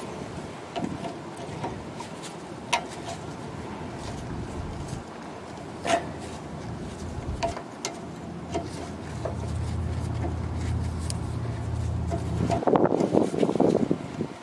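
A metal tool clinks and clanks against bolts.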